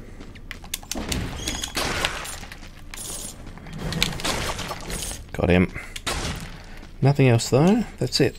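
Sword slashes and meaty hits crack out in quick bursts.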